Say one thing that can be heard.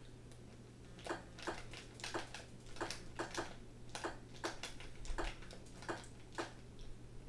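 Short electronic blips sound from a video game through a television speaker.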